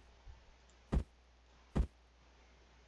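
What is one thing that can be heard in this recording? Menu clicks sound sharply.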